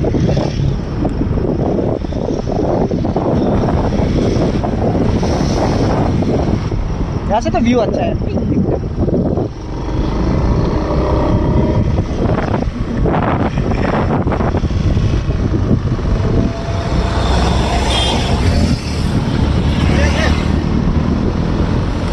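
Wind rumbles and buffets loudly outdoors.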